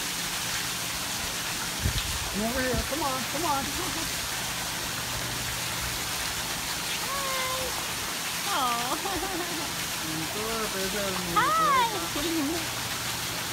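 Water sloshes softly as a bear shifts in a pool.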